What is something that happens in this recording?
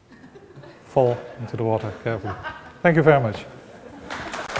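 A man speaks to an audience in a large room.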